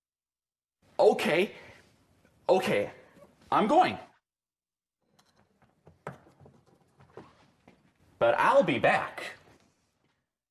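A man answers loudly and theatrically.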